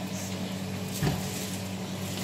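A metal bowl clanks against a pot.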